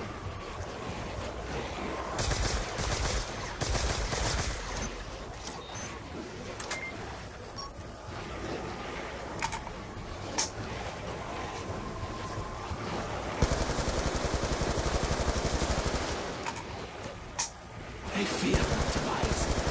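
Electric weapon blasts crackle and zap.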